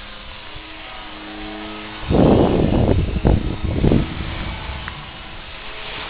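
A small model airplane engine buzzes steadily overhead.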